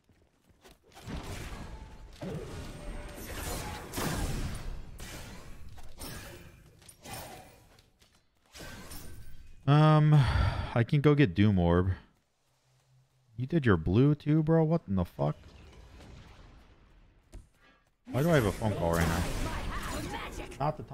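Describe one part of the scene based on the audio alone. Magic spells whoosh and crackle in a game.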